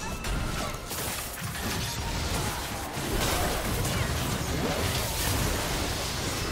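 Spell effects whoosh and crackle in a fast fantasy battle.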